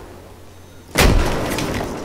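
Rapid gunfire bursts loudly at close range.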